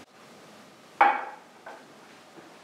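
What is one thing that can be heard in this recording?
A metal clamp is set down with a clunk on a hard surface.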